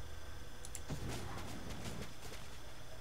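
A fiery blast bursts with a whoosh.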